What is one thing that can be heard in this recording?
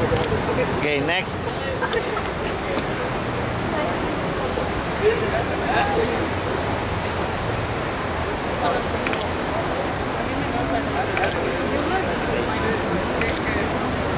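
A crowd murmurs steadily in the background outdoors.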